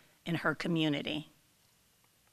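A woman speaks into a microphone in a large hall.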